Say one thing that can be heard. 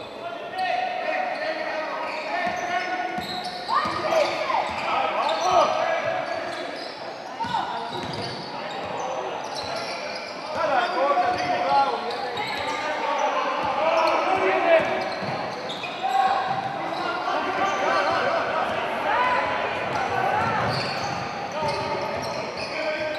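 A crowd of spectators chatters and shouts in a large echoing hall.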